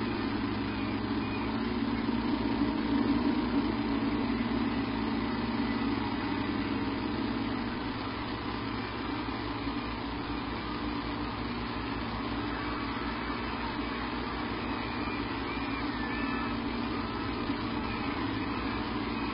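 Wind blows steadily through trees outdoors.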